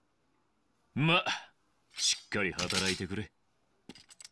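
A young man speaks with animation.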